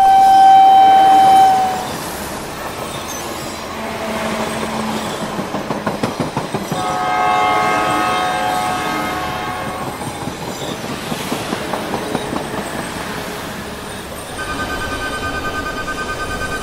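Trains rumble and clatter along the tracks.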